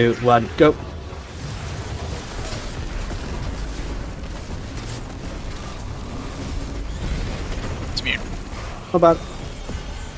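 Gunfire and explosions boom and rumble continuously.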